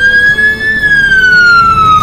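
Water splashes as a truck drives into it.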